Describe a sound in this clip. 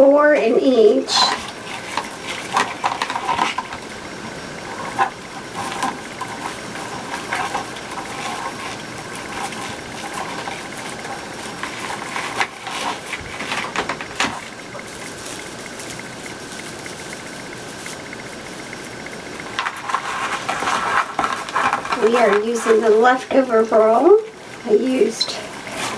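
Plastic mesh rustles and crinkles as it is handled.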